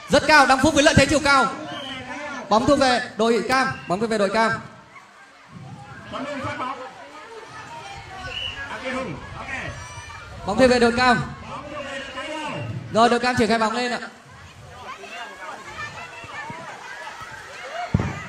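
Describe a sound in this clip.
Water splashes as children wade and throw a ball.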